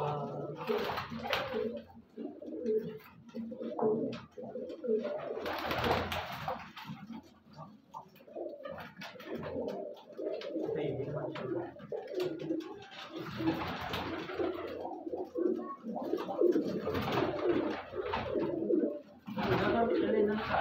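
Pigeon wings flap in short bursts.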